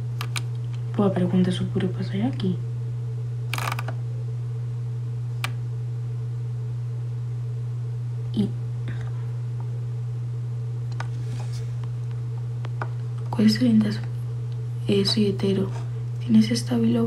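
A young woman speaks casually, close to a phone microphone.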